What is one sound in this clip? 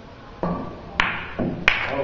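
A cue stick strikes a billiard ball with a sharp click.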